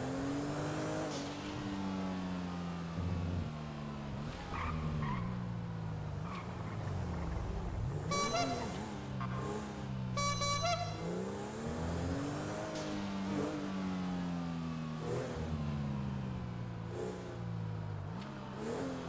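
A car engine revs hard, rising and dropping in pitch as the gears shift.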